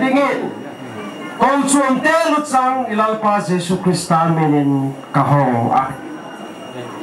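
A man speaks through a loudspeaker outdoors.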